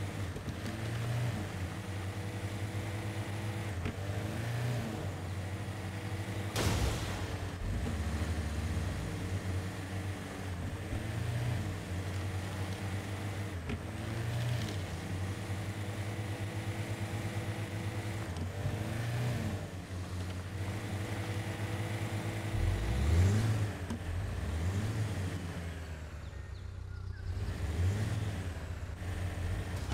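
A vehicle engine rumbles steadily, revving up and down as it climbs over rough ground.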